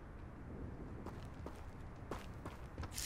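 Quick footsteps run over dirt.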